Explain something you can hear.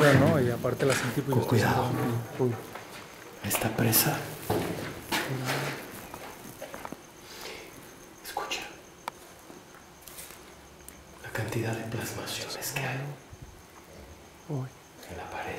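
A young man speaks quietly and tensely, close by.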